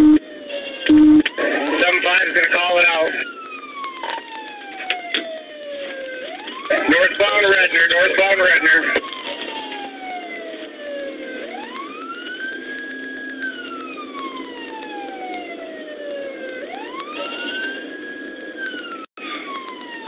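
A siren wails up and down close by.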